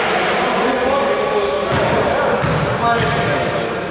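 A basketball bounces on the floor in a large echoing hall.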